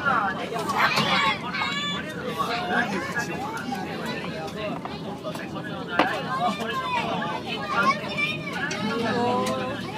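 A lion licks and tugs at raw meat close by.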